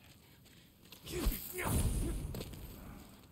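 Blades clash and strike in a fight.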